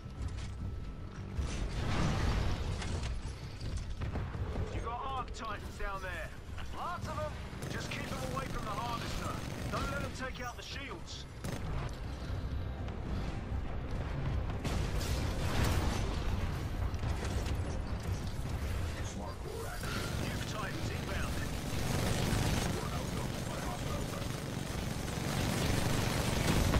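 A heavy machine gun fires in rapid, rattling bursts.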